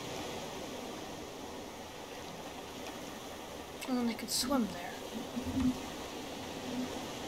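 Ocean waves wash steadily.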